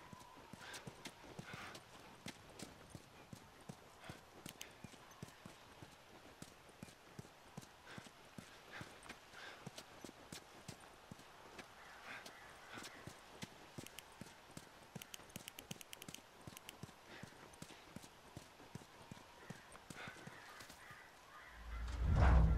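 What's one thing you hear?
Footsteps tread on grass and pavement.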